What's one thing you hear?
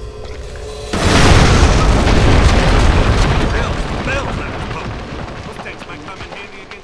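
A loud explosion booms and slowly fades.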